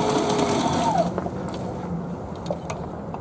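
A sewing machine whirs steadily and then stops.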